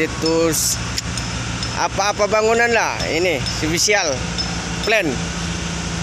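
A young man talks nearby outdoors.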